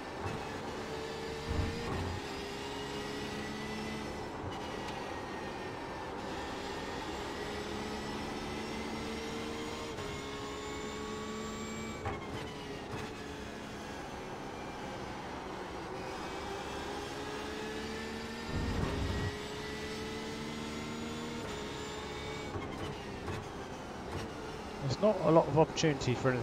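A racing car engine revs high, rising and dropping with each gear change.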